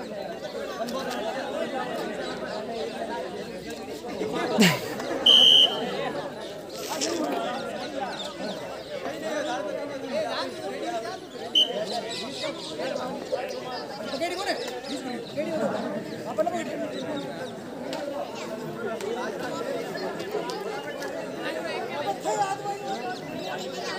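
A crowd of men and boys shouts and cheers outdoors.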